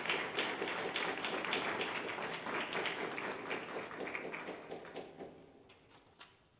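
An audience applauds, then the clapping fades away.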